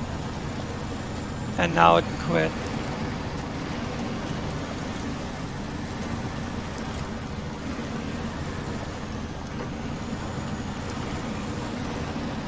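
Tyres splash and crunch through mud and gravel.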